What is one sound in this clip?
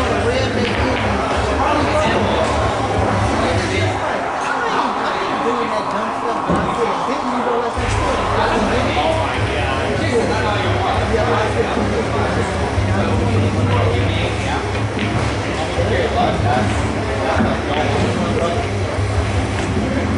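Pool balls click together.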